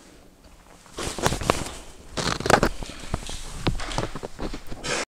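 Paper rustles close to a microphone.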